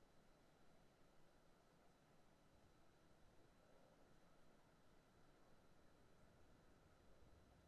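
Horses' hooves drum on a track in the distance.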